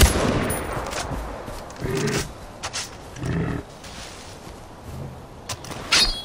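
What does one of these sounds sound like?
Footsteps crunch through grass and undergrowth.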